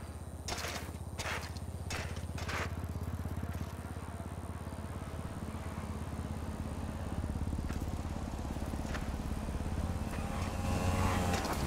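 A bicycle rolls steadily along a paved road.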